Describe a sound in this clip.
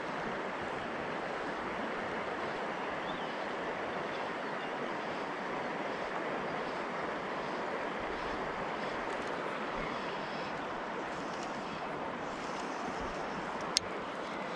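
A river flows steadily nearby.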